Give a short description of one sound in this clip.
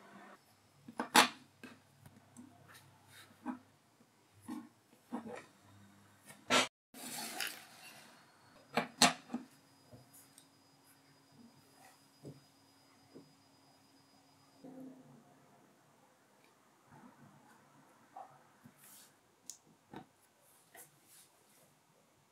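Small plastic parts click and knock against a hard tabletop.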